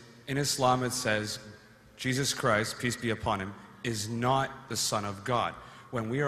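A young man asks a question through a microphone.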